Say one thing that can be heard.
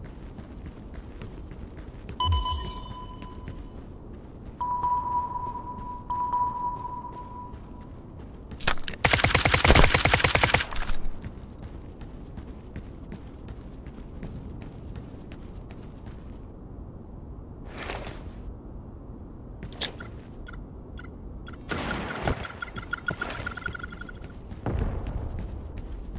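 Footsteps run on a hard rooftop.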